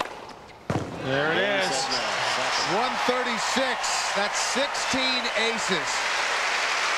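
A stadium crowd cheers and whoops.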